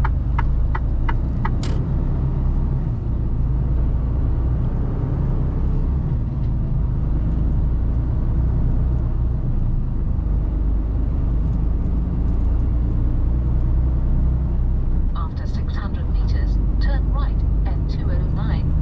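A truck engine hums steadily as the truck drives along a road.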